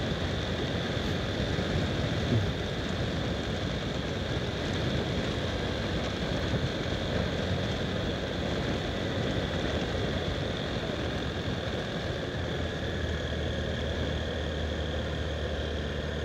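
Wind rushes past steadily, outdoors.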